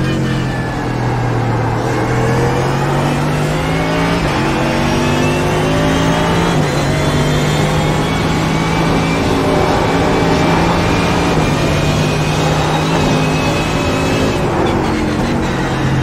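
A racing car engine roars at high revs, rising in pitch and dropping briefly with each gear change.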